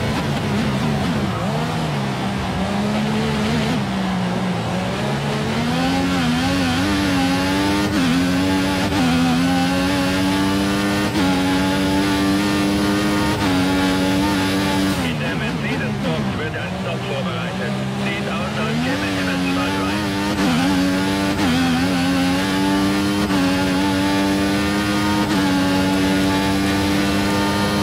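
A racing car engine whines, rising in pitch as it speeds up and dropping as it slows for corners.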